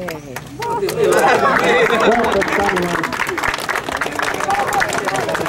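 A small group of people clap their hands.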